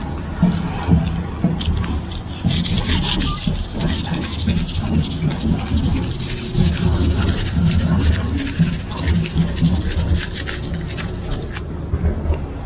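Fingernails scratch and scrape paper off a metal pole.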